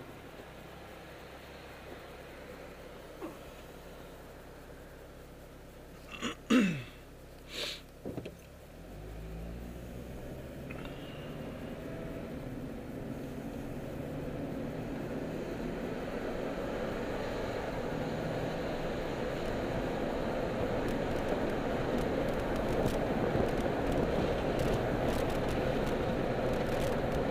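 A car engine idles and then accelerates, its hum rising steadily.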